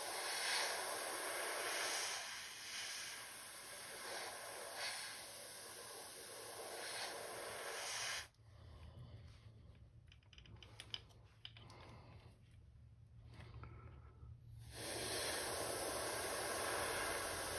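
An airbrush sprays with a steady hiss.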